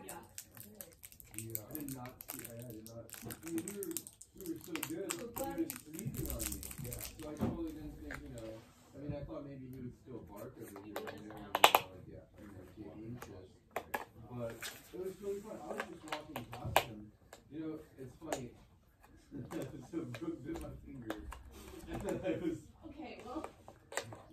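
Plastic packaging crinkles and rustles in hands.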